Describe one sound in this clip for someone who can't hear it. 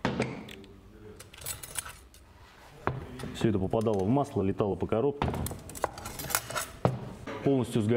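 Metal parts clink and knock together.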